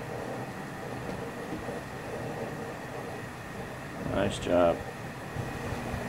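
Hot liquid pours and trickles from a ladle.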